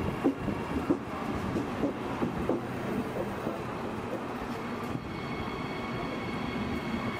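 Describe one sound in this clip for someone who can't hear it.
A train rumbles past on the rails.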